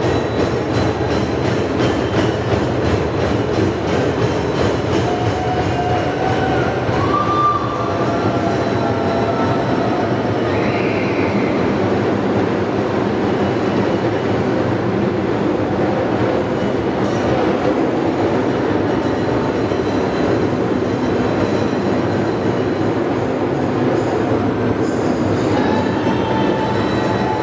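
A group of drummers beats hand drums in a fast, loud rhythm, echoing in a large hall.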